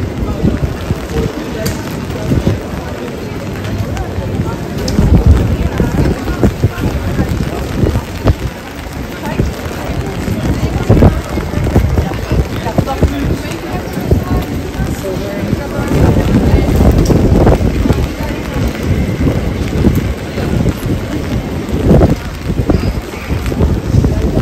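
A crowd of people chatters nearby and far off, outdoors.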